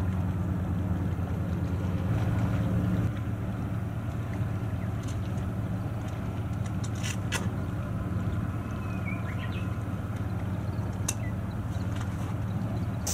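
A ship's engine rumbles low and steady across the water.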